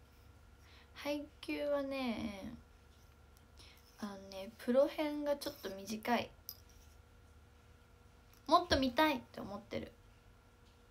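A young woman speaks softly and casually, close by, in short bursts with pauses.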